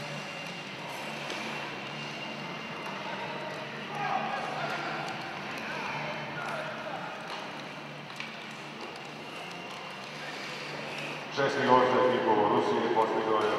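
Sled blades scrape across ice.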